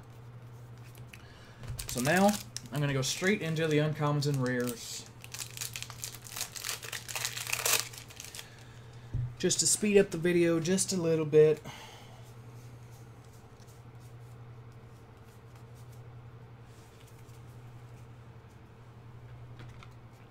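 Playing cards slide and tap on a hard surface.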